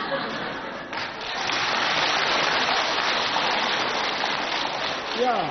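A large audience laughs loudly.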